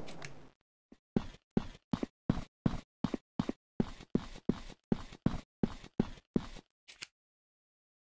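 Footsteps thud quickly on wooden planks.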